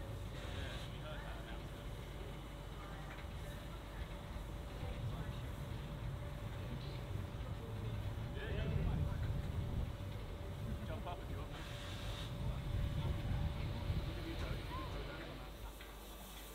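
A steam locomotive idles nearby with a deep, steady rumble.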